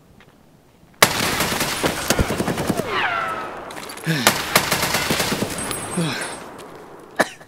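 A rifle fires shots.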